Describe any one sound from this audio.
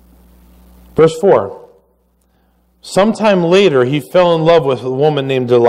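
A middle-aged man speaks steadily through a microphone.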